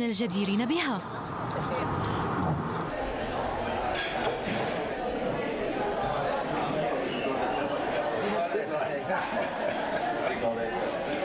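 A man chats and laughs.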